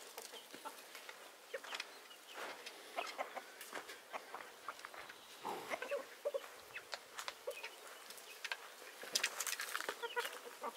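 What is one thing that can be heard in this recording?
Chickens cluck and call close by outdoors.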